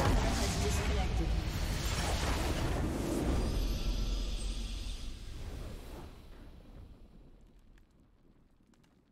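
A triumphant game fanfare swells and then slowly fades away.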